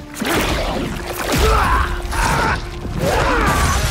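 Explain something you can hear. A man screams loudly in pain.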